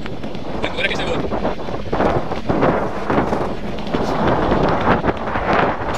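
Bike tyres crunch and rattle over loose gravel.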